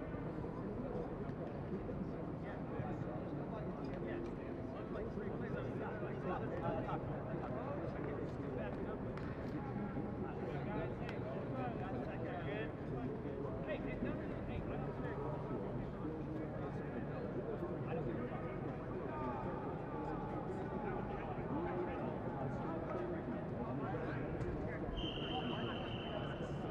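A crowd of young men and boys chatter and call out across an open outdoor field.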